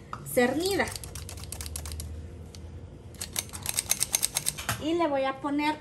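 A flour sifter's crank clicks and rattles rapidly.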